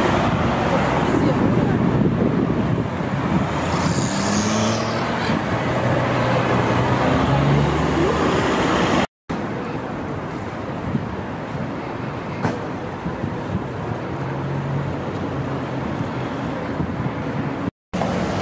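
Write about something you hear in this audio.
Heavy city traffic rumbles past with car engines.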